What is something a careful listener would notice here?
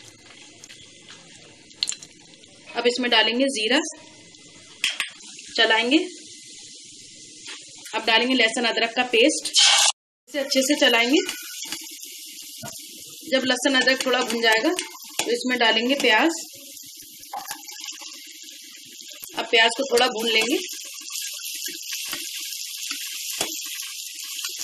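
Oil sizzles and crackles in a hot pot.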